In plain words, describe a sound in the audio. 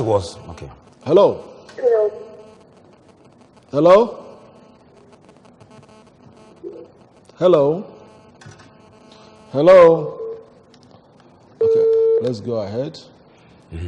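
An elderly man speaks into a microphone in short, emphatic bursts with pauses.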